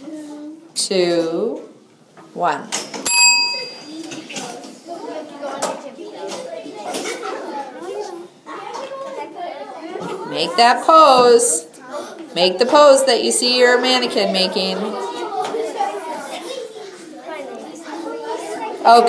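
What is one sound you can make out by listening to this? Young children chatter and shout excitedly in an echoing room.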